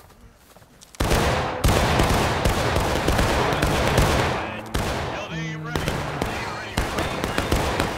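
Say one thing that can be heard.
Rifles fire in a loud, rapid volley of cracking shots.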